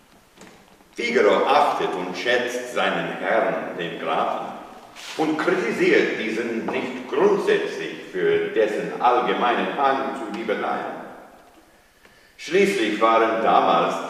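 An elderly man recites aloud with strong expression in an echoing room.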